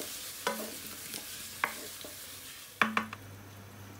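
A glass lid clinks onto a pan.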